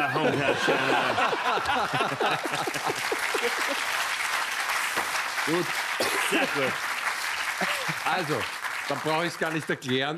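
An audience applauds steadily.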